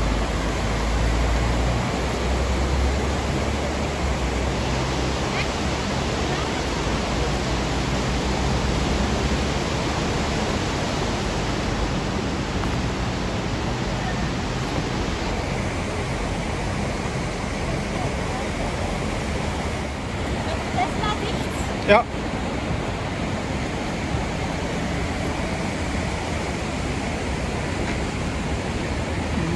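A fast river rushes loudly over rocks nearby.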